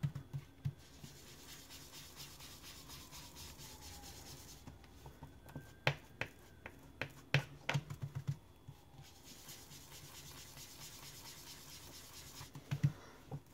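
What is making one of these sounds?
A foam tool rubs and scuffs softly across paper.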